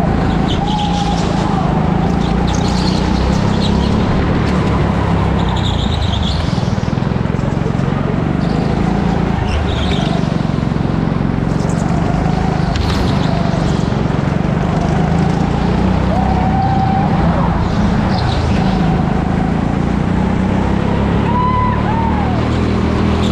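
Kart tyres squeal on the smooth floor through the corners.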